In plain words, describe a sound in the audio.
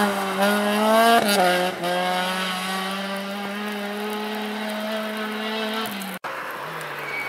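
A rally car engine revs loudly as the car speeds away.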